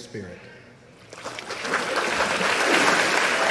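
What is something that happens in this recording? Water splashes as a person is lowered into it and lifted out.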